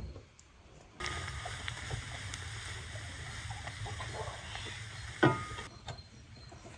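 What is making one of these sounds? Meat sizzles loudly in a pot.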